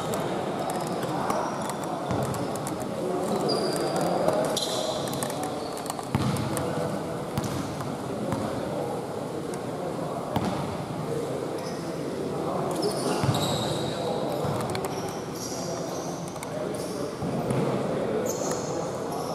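A crowd chatters in a large echoing hall.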